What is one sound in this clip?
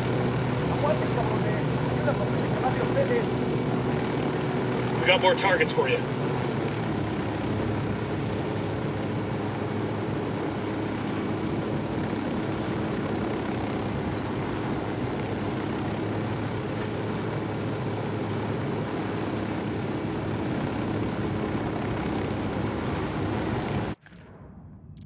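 A helicopter's rotor thuds and its engine drones steadily.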